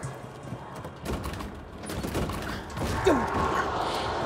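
A metal door handle clicks and rattles.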